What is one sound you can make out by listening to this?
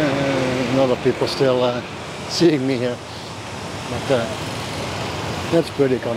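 A city bus drives past.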